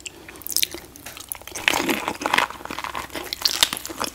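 A woman bites into a fresh spring roll with a crisp crunch close to a microphone.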